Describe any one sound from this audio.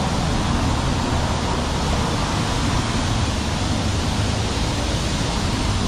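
A car engine hums nearby as it drives slowly over cobblestones.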